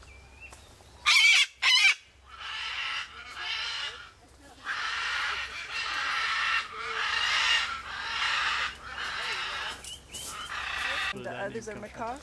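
A cockatoo screeches loudly.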